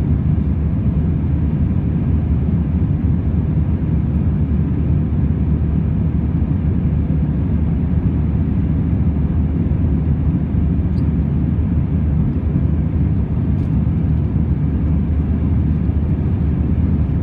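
Jet engines roar steadily through the cabin of an airliner in flight.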